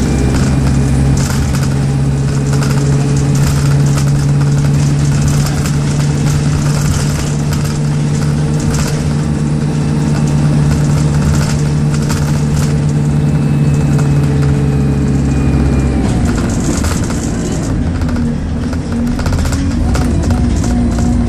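A bus rattles and clatters as it rolls along.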